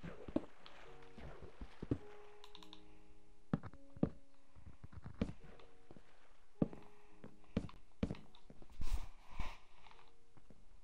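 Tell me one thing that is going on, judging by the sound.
Footsteps thud and clack on wooden boards.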